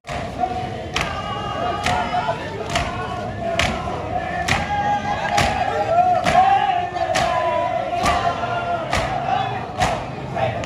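Many men beat their chests in a steady rhythm.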